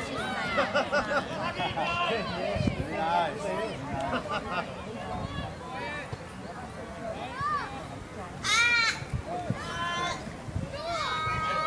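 Children and adult spectators shout and cheer outdoors.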